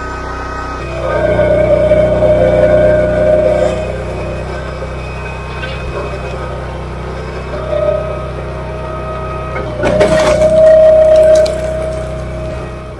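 A hydraulic log splitter whines as its ram pushes.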